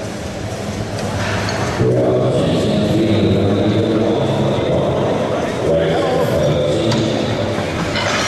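Heavy weight plates clank on a barbell rack.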